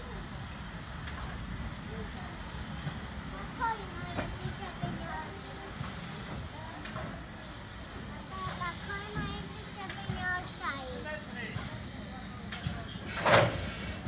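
A steam locomotive puffs out steam.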